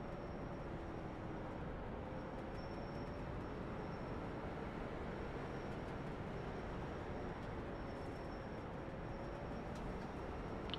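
Race car engines drone steadily at low speed.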